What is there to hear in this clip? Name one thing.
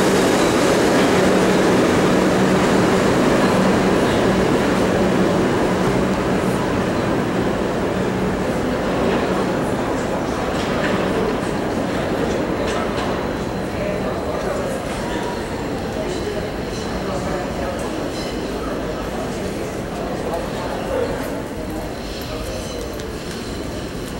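A subway train rumbles away down an echoing tunnel, slowly fading.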